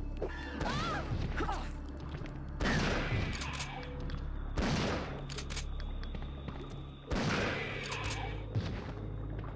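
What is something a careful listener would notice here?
Creatures screech and groan in pain.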